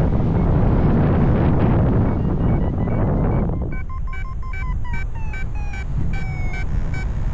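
Wind rushes loudly past in flight, then eases.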